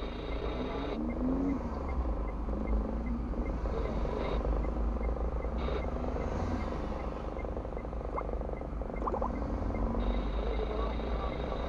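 Cars drive past close by.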